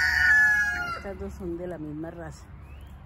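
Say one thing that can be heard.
A hen clucks softly in short calls.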